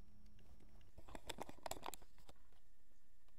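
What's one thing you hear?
A plastic laptop lid clatters and knocks as it is handled.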